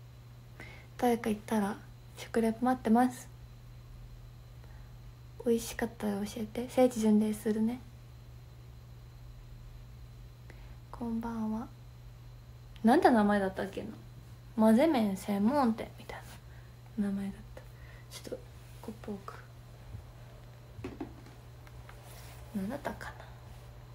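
A young woman talks calmly and close up, in short bursts with pauses.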